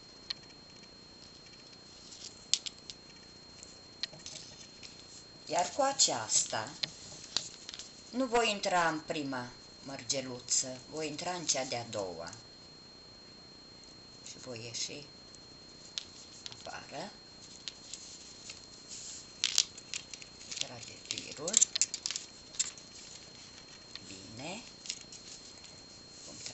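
Small plastic beads click softly against each other.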